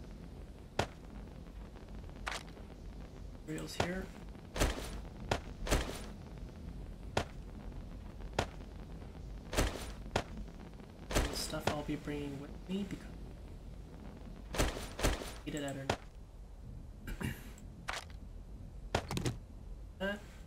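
Short clicks and thuds sound as items are moved around a game inventory.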